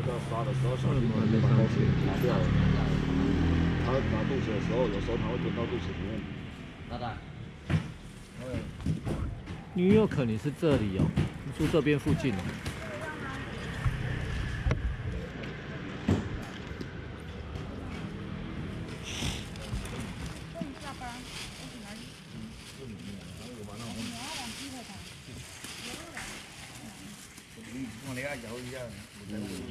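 A middle-aged man talks close by.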